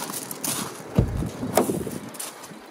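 A van door clicks open.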